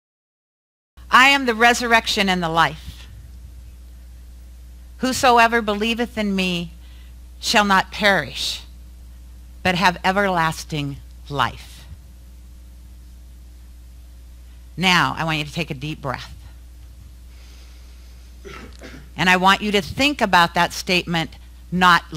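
A woman speaks with animation into a microphone in a room with a slight echo.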